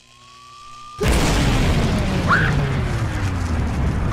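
A fire roars loudly after a blast.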